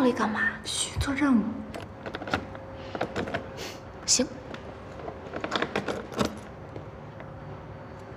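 A metal tool clicks and taps against hard plastic.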